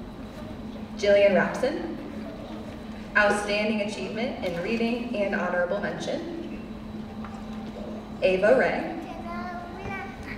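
A man announces names over a loudspeaker in a large echoing hall.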